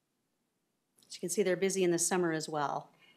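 A woman speaks clearly into a microphone in a room.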